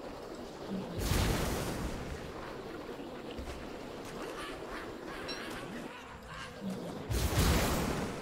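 A rushing whirlwind whooshes loudly in short bursts.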